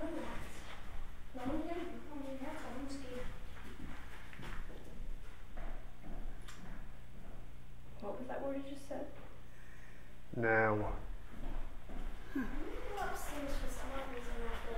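A young girl speaks nearby.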